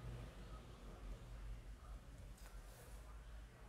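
A plastic ruler slides across sheets of paper.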